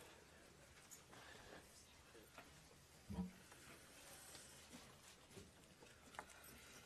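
Papers rustle softly close by.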